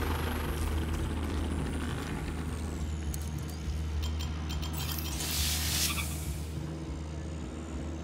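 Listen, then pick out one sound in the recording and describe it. A small drone hums and buzzes overhead.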